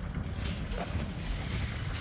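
A shopping cart rattles as it rolls over pavement.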